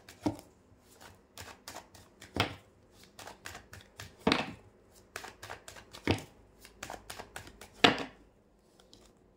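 Playing cards riffle and flutter as they are shuffled.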